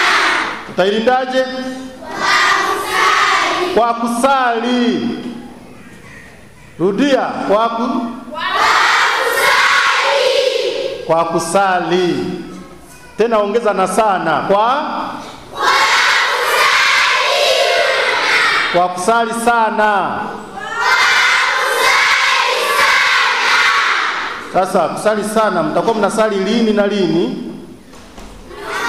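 A large choir of children sings together in an echoing hall.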